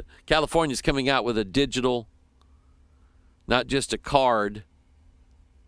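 A middle-aged man talks calmly and closely into a microphone.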